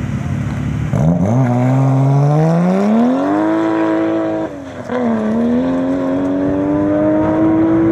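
A car engine revs hard and roars as the car speeds away, rising and falling in pitch.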